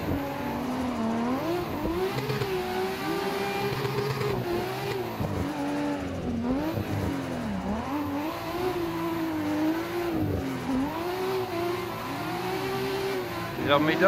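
A racing car engine revs hard, rising and falling as the gears shift.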